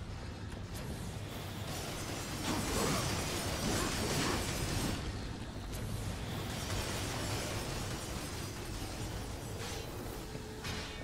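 Swords clash and slash with whooshing hits.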